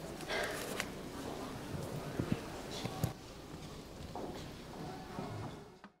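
A large crowd of men and women pray aloud together, their many voices echoing in a large hall.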